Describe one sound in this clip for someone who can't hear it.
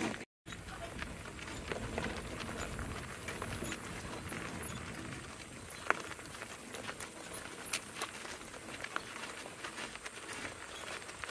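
Hooves clop steadily on a gravel road.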